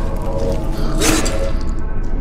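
A sharp heavy blow strikes with a crack.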